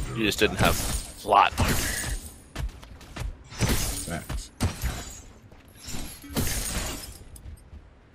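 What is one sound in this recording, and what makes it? Heavy metallic blows and bursts of impact crash in quick succession.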